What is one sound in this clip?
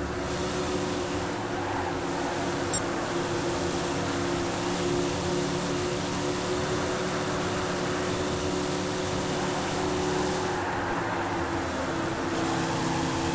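A stock car V8 engine roars at full throttle.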